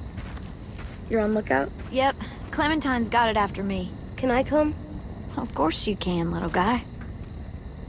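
A teenage girl answers in a friendly voice, close by.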